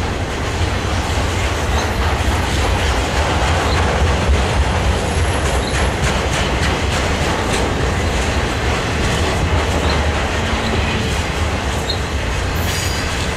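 A freight train rumbles past close by with a steady, heavy roar.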